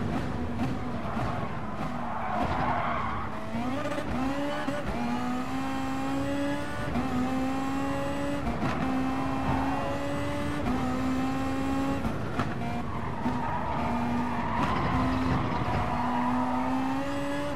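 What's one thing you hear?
Tyres squeal through the corners.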